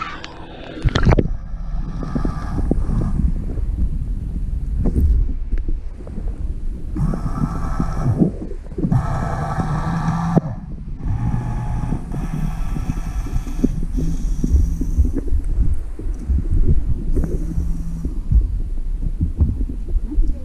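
Water churns and gurgles, heard muffled from underwater.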